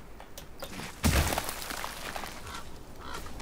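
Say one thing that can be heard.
Loose snow and stones crumble and rush down a rock face.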